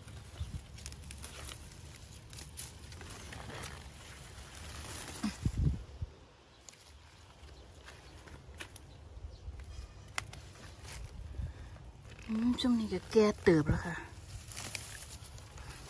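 Leafy plants rustle and snap as a hand pulls at them.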